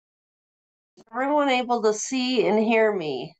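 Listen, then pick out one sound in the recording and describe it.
A middle-aged woman speaks cheerfully over an online call.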